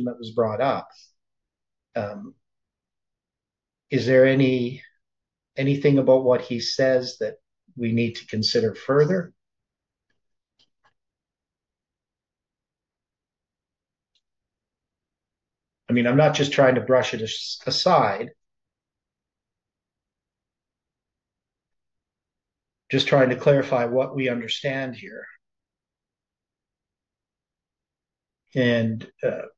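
An elderly man talks calmly and slowly into a close microphone, with long pauses.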